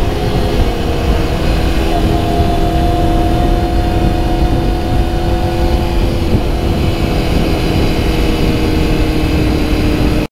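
Wind rumbles and buffets loudly past the rider.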